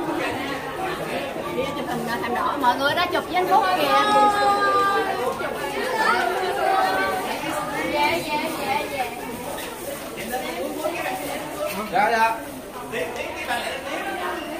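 Several women chatter and call out nearby in a busy crowd.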